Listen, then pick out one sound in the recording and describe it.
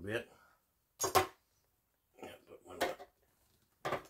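A metal can clinks as it is set down.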